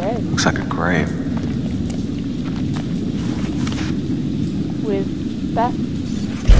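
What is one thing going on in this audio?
A young woman talks quietly to herself.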